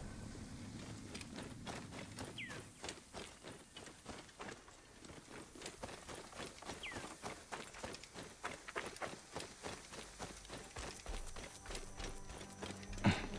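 Footsteps run quickly over grass and dry ground.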